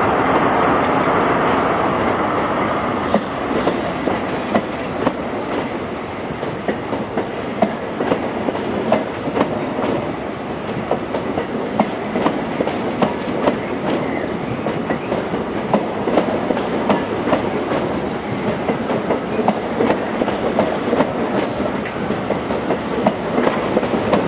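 A train rolls steadily past close by.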